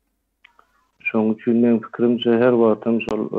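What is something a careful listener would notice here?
A man chants a verse in a melodic voice.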